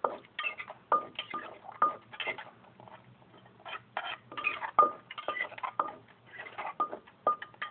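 A stone pestle pounds and grinds food in a mortar with sharp knocks.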